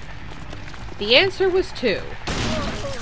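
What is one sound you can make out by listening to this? A young woman exclaims loudly through a microphone.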